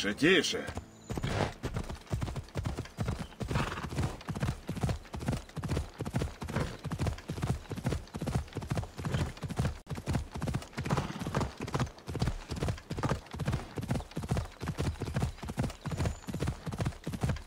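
Hooves pound rapidly and steadily as a horse gallops.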